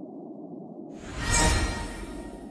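A whooshing sound swells.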